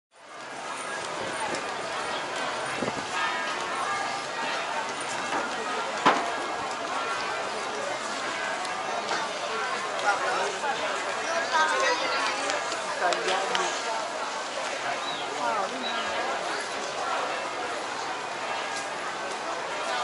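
A crowd of people chatters outdoors all around.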